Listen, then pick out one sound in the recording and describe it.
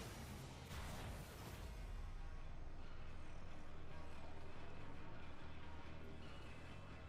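A deep explosion booms and rumbles away.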